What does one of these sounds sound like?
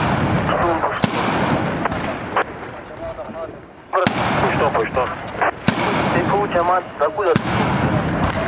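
A heavy machine gun fires single shots outdoors at a distance.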